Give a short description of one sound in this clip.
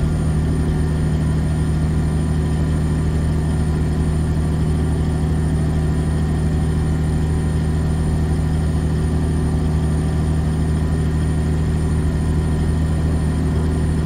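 A truck's diesel engine hums steadily with a low drone.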